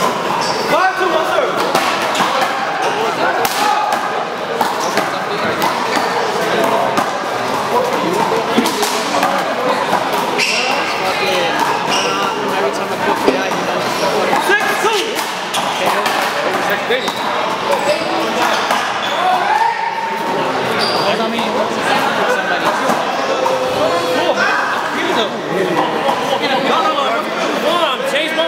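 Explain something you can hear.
A ball smacks against a wall and echoes around a large hall.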